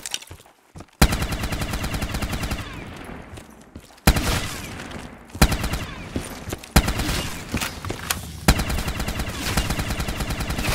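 A heavy gun fires a fast continuous stream of shots.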